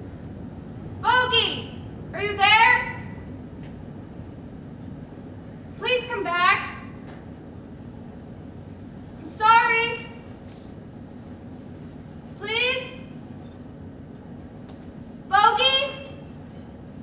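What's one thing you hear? A young woman sings short, drawn-out phrases in an echoing hall.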